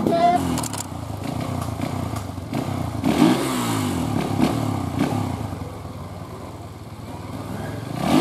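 A motorcycle engine revs and idles unevenly nearby.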